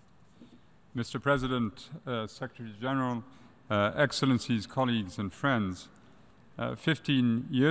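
A man speaks formally through a microphone in a large echoing hall.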